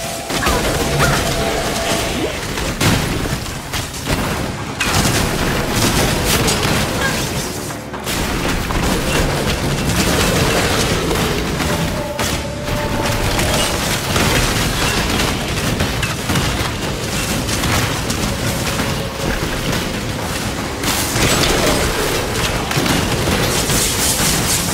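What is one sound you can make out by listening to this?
Magic spells crackle and burst in quick bursts.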